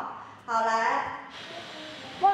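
A young woman speaks briefly and calmly.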